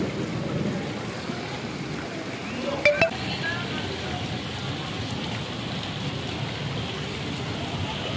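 People wade through deep water, splashing.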